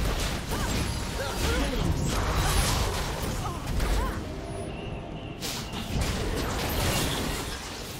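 Game spell effects whoosh and blast during a fight.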